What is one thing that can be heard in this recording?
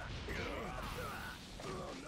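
Fiery explosions burst and crackle.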